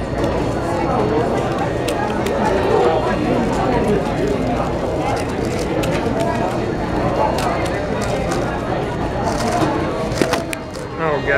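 Plastic pieces of a face-turning octahedron puzzle click as it is turned fast.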